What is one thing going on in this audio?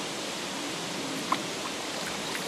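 A fish splashes at the water's surface.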